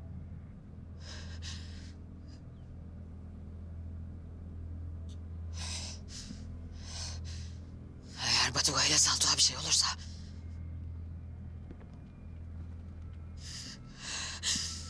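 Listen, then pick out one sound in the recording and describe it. A woman speaks in a hushed, tearful voice nearby.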